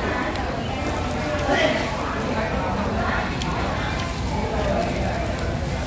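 Food sizzles and crackles on a hot grill.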